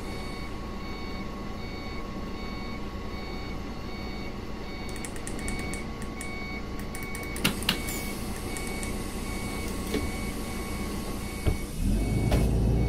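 A bus engine idles with a steady hum.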